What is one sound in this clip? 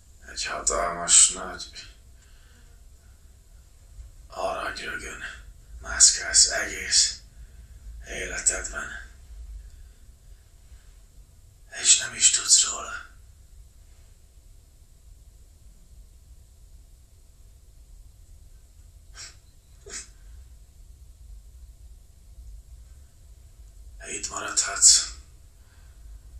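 A man speaks quietly and hoarsely, close by, in short broken phrases.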